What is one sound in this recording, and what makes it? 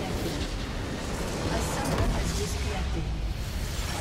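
A large crystal shatters with a booming explosion.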